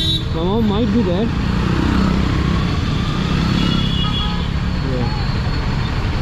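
Traffic hums nearby.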